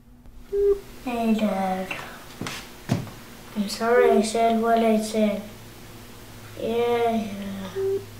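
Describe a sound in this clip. A young boy talks quietly on a phone.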